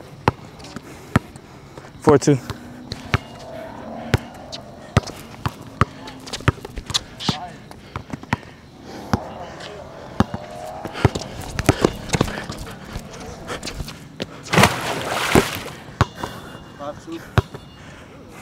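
A basketball bounces repeatedly on a hard outdoor court.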